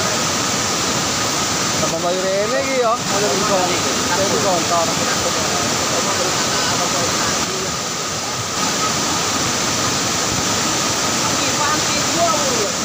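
A fast flooding river roars and rushes loudly nearby.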